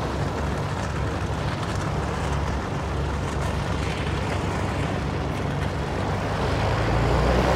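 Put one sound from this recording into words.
A light single-engine propeller plane taxis by.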